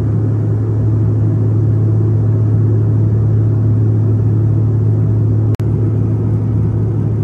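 A jet airliner's engines roar with a steady, deep drone.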